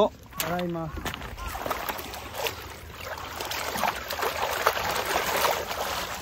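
Water splashes and sloshes through a basket being rinsed.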